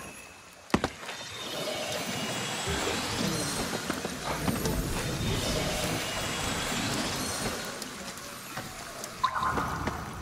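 A magical energy crackles and whooshes in bursts.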